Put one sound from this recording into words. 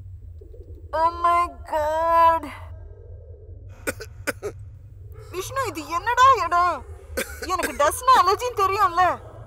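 A young woman cries out.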